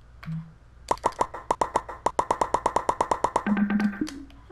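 A menu clicks rapidly as options are scrolled through.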